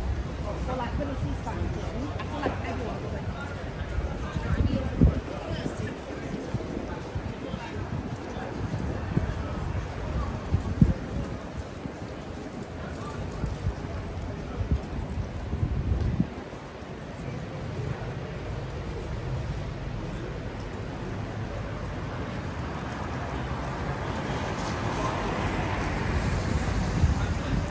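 Cars swish past on a wet street.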